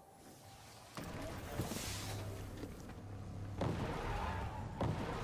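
A hover bike's engine hums and whooshes along.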